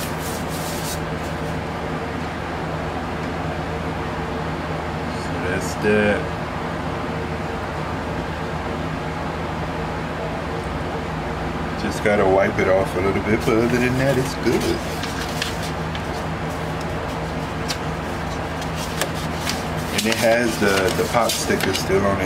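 A paper record sleeve rustles and slides as hands handle a vinyl record.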